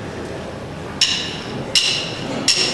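Cymbals crash loudly.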